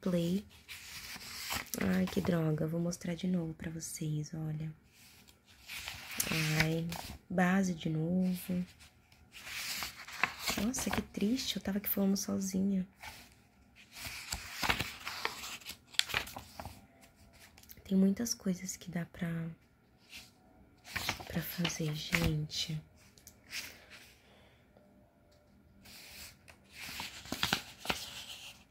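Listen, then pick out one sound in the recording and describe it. Paper pages rustle and flap as a book's pages are turned.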